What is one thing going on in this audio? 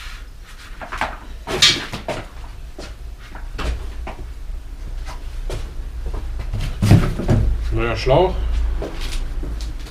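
Metal parts knock and clatter close by.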